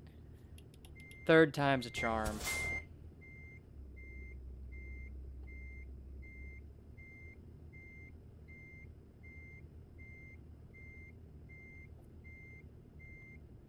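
A reversing alarm beeps in a steady rhythm.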